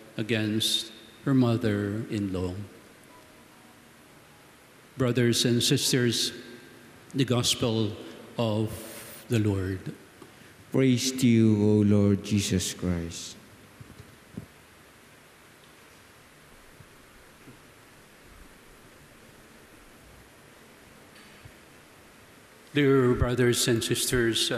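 An elderly man speaks calmly into a microphone in a room with a slight echo.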